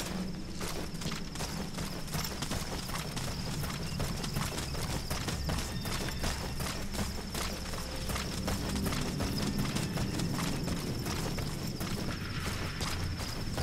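Footsteps scuff and crunch on dry ground.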